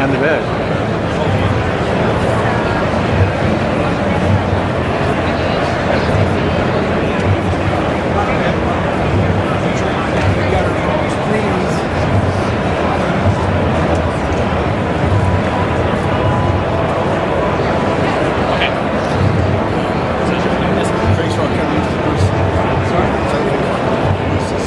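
A crowd chatters throughout in a large, busy hall.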